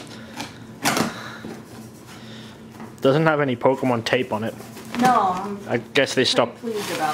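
Cardboard flaps rustle as a box is opened.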